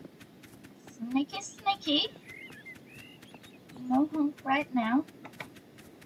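A young woman talks with animation into a microphone.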